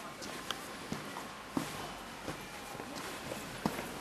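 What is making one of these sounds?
Footsteps tap on pavement as a woman walks past.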